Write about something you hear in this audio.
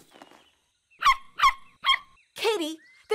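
A small dog barks several times.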